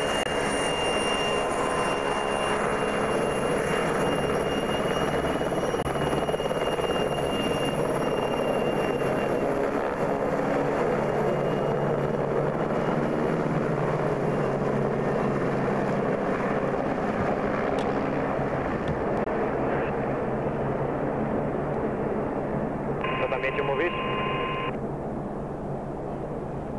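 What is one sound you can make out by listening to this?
A helicopter's engine whines and its rotor thumps loudly close by.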